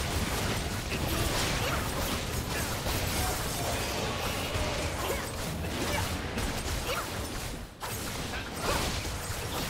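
Spell blasts and hits from a video game battle crackle and boom.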